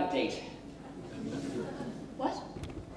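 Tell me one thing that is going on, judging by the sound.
A teenage boy speaks on a stage in a large hall.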